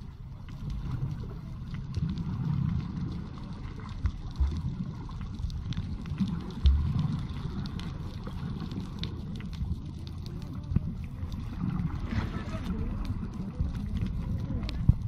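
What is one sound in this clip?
Water churns and gurgles, muffled underwater.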